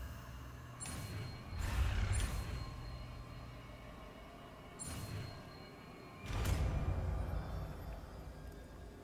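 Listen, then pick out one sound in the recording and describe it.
A deep magical whoosh rumbles and swells.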